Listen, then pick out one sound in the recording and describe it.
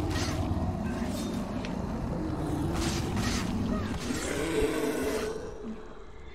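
A monstrous beast roars with a deep, rumbling growl.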